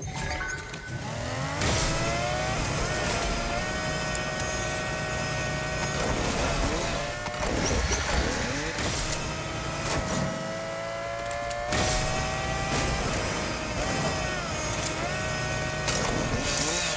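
A car engine revs up and roars, rising and falling in pitch as it speeds along.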